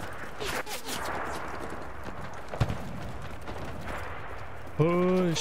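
Distant gunfire and explosions rumble across a battlefield.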